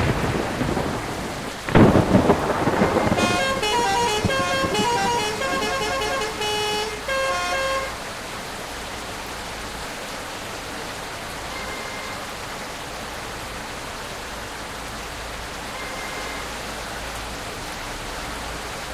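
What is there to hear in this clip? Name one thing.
A large bus engine rumbles steadily.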